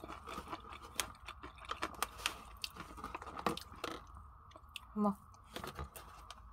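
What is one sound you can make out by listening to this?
Crinkly paper wrapping rustles and crackles close by.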